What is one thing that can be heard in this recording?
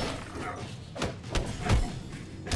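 Heavy punches and kicks land with thuds.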